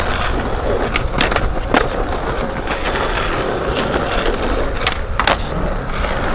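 A skateboard clacks sharply against the ground.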